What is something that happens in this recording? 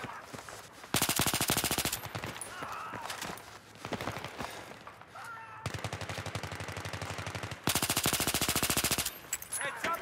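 A rifle fires rapid bursts of shots at close range.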